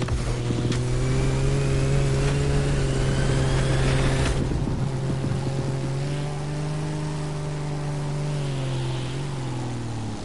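A propeller plane's engine drones steadily, rising and falling slightly in pitch.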